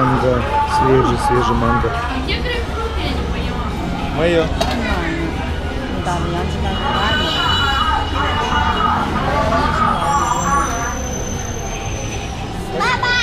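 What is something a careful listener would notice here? A metal spoon scrapes and clinks in a container.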